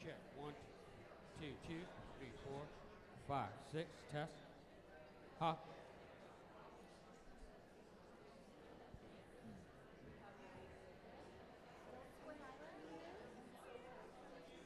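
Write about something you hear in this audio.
A woman speaks through a microphone in a large room with some echo.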